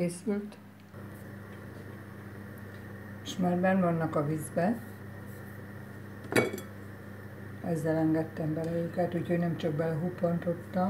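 Water bubbles and boils steadily in a pot.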